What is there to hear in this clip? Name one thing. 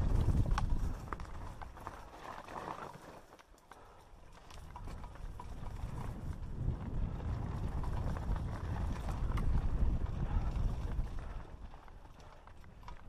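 A mountain bike rattles and clatters on rough ground.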